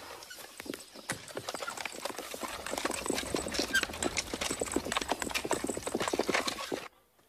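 Carriage wheels rattle along.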